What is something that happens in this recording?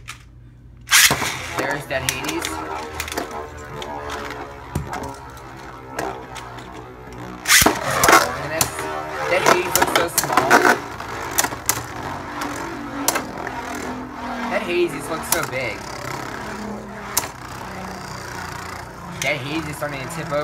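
A spinning top whirs and scrapes across a plastic dish.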